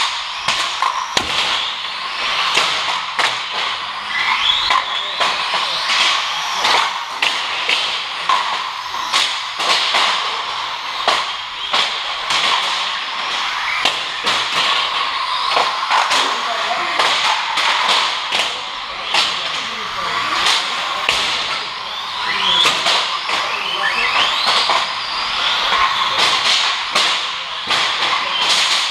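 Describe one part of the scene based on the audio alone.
Small tyres hiss and skid on a smooth concrete track.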